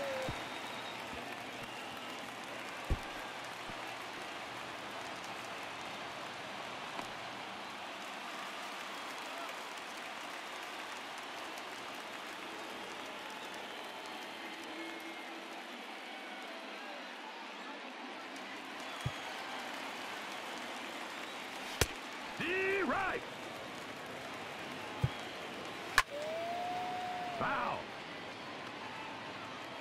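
A stadium crowd murmurs in the distance.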